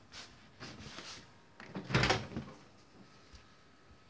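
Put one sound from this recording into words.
A refrigerator door opens with a thump.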